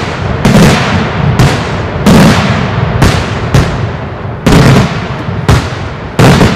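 Fireworks burst overhead with loud, sharp bangs that echo and rumble away.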